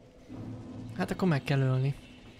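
A young man speaks close into a microphone.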